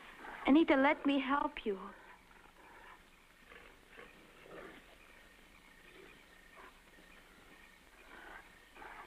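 A young woman speaks in a high, strained voice, then goes on quietly.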